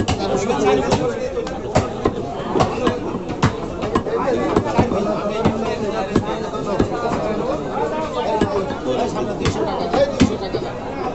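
A cleaver chops meat on a wooden block with repeated thuds.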